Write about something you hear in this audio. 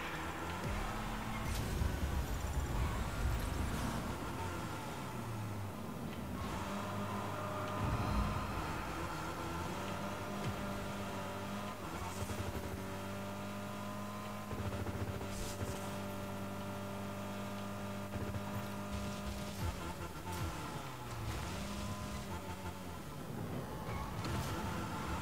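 A racing car engine hums and roars steadily, shifting pitch as the car speeds up.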